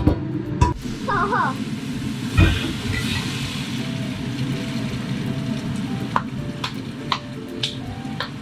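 Water runs from a tap into a metal pot.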